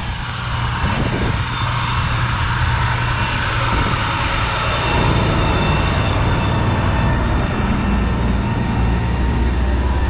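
Trucks roar past on a highway.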